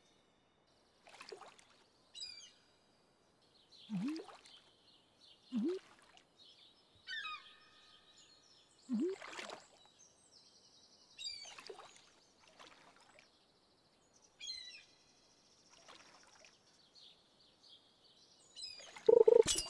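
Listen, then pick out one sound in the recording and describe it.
Water splashes softly as a fishing line bobs.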